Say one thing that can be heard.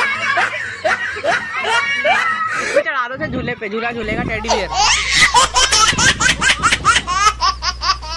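Children shout and laugh outdoors.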